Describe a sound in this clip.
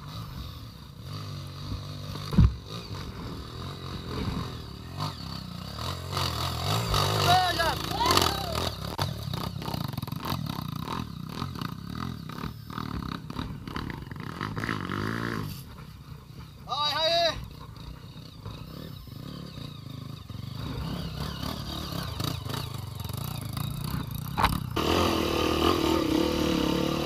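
Dirt bike engines rev and sputter nearby, outdoors.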